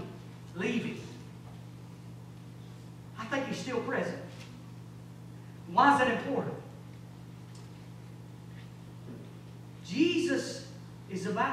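A man speaks slowly in short phrases through a microphone and loudspeakers in an echoing hall.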